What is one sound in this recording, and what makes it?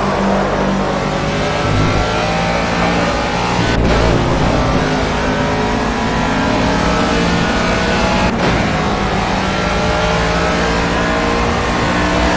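A racing car engine roars loudly, its pitch climbing steadily.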